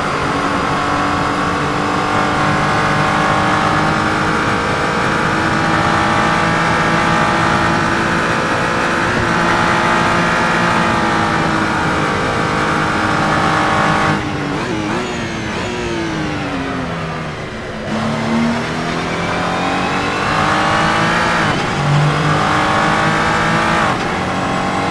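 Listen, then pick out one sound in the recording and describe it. A racing car engine roars loudly at high revs.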